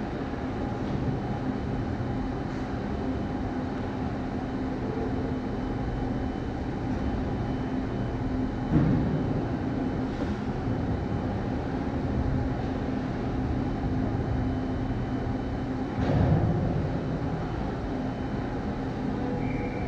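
A large echoing ice rink hums with a steady low drone.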